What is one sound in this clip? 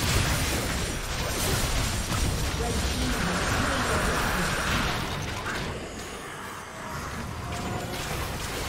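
Magic blasts whoosh and crackle in a video game battle.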